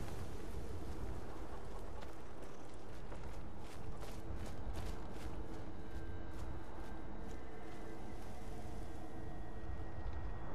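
Footsteps crunch steadily on grass and dirt.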